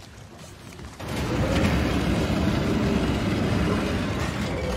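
A heavy wooden wheel creaks and grinds as it turns.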